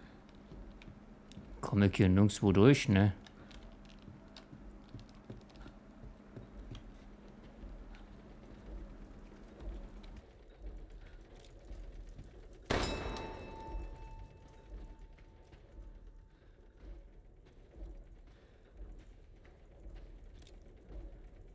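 Footsteps creak softly on a wooden floor.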